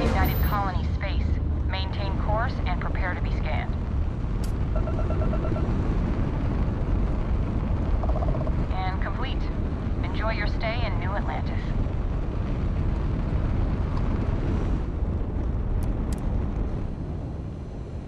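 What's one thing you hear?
A spaceship's engines rumble with a deep, steady roar.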